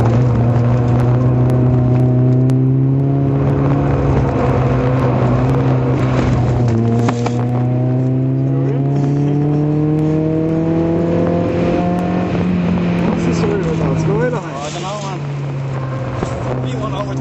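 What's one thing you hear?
A race car engine drones loudly and steadily, rising in pitch as it speeds up and dropping at each gear change.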